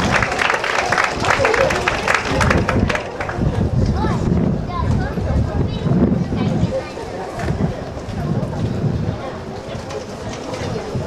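A crowd murmurs and chatters outdoors in a large stadium.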